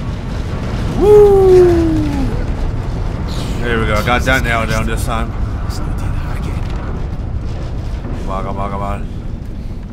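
A young man groans and exclaims loudly into a close microphone.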